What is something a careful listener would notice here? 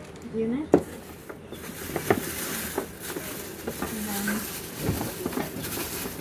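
A coiled rubber hose rustles and knocks against a cardboard box.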